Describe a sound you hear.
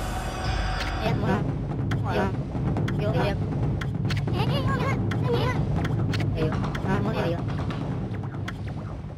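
Quick chirpy babbling blips play in bursts.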